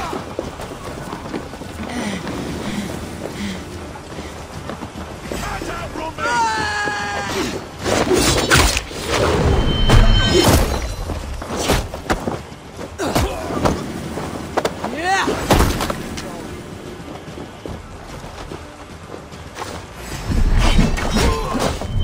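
Footsteps crunch over dirt and stone.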